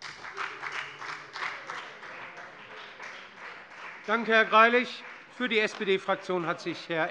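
A man speaks into a microphone, heard through a loudspeaker in a large hall.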